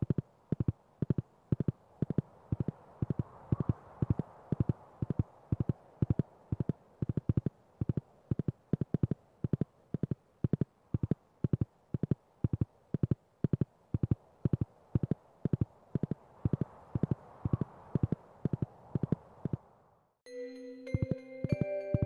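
Hooves clip-clop steadily as a horse trots along.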